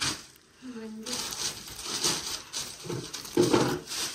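A plastic sheet rustles and crinkles close by.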